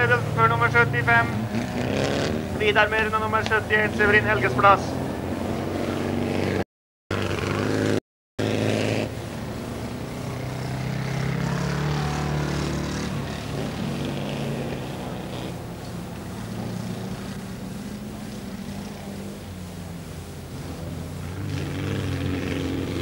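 Race car engines roar and rev.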